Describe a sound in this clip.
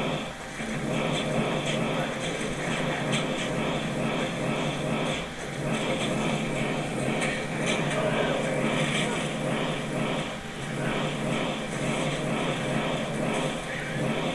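Small fireballs crackle and explode.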